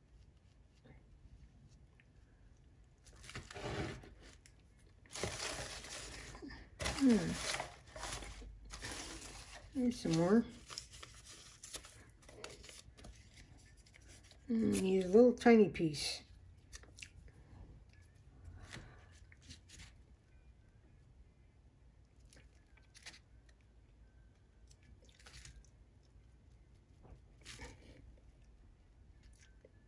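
A brush taps and dabs softly on paper.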